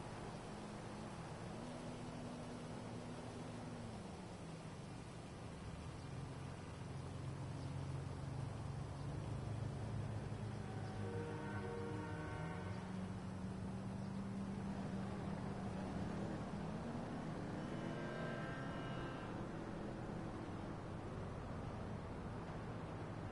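A vehicle engine idles and revs now and then.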